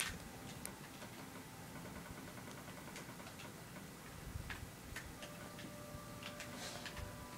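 Soft clicking sounds from a video game play through a television speaker.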